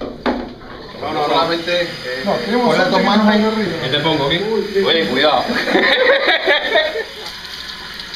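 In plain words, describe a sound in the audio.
Several men talk and laugh loudly nearby.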